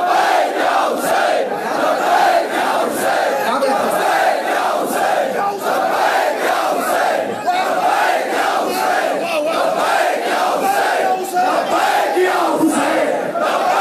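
A crowd of men beats their chests in rhythm.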